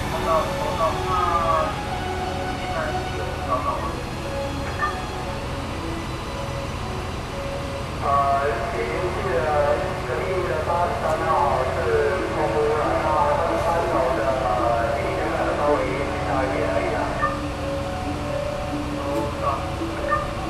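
A fire truck's engine idles with a steady low rumble.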